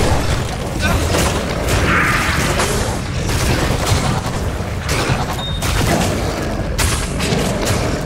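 Swords clash and strike in quick blows.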